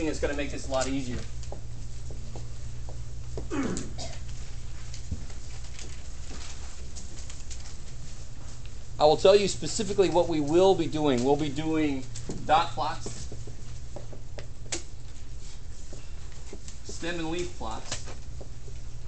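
A man speaks to a room, close by.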